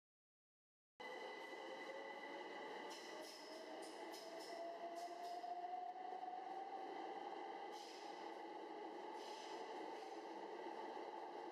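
An electric train's motors whine, rising in pitch as it gathers speed.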